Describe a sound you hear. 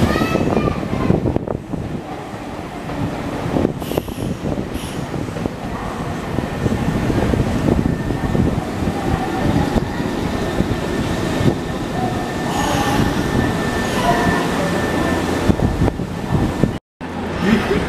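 A train rolls past close by with a loud rumble and clatter of wheels on rails.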